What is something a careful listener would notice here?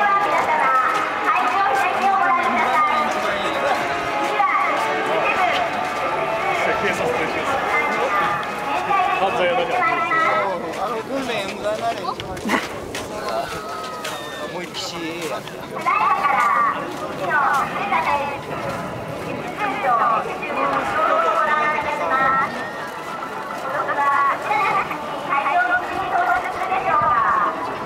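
A crowd of men and women chatters nearby outdoors.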